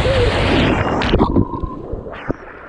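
A young man splashes into a pool of water.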